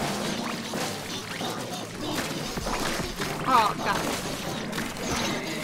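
Paint guns spray and splat in rapid bursts.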